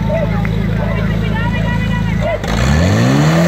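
A portable pump engine idles with a low rumble nearby.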